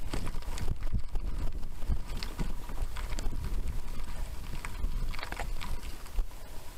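Bicycle tyres crunch and rattle over loose gravel.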